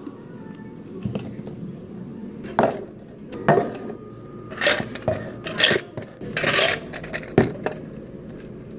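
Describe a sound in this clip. Ice cubes clatter into plastic cups.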